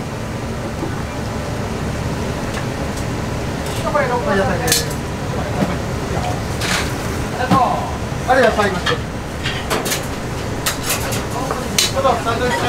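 Bowls and utensils clink and clatter now and then.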